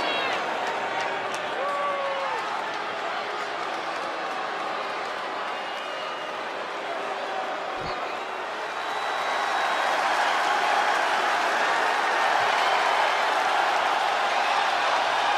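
A large crowd cheers and roars throughout a big echoing arena.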